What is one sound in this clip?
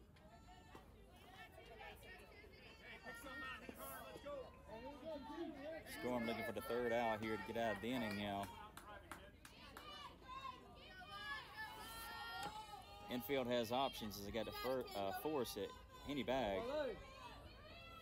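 A softball smacks into a catcher's mitt.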